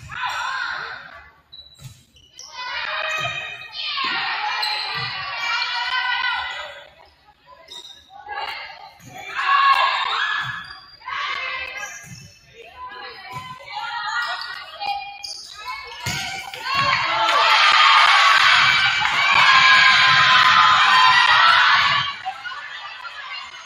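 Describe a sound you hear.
Spectators cheer and shout in a large echoing hall.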